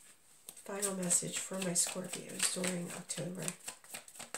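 Playing cards shuffle and riffle in hands.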